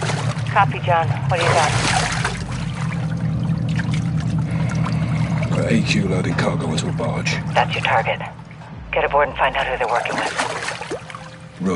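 A man answers through a radio.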